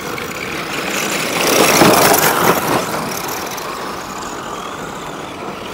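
Small electric motors whine as toy cars race past.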